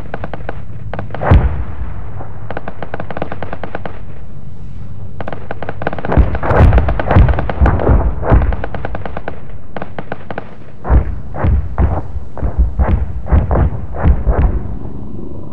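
Explosions boom and echo across open water.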